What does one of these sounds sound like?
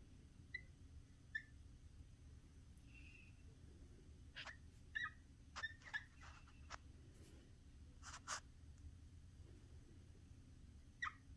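A marker squeaks and taps in short strokes on a whiteboard.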